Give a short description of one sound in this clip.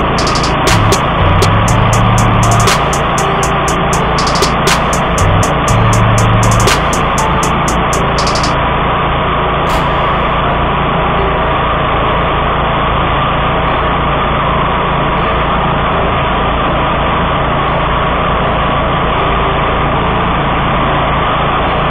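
A mower engine drones steadily close by.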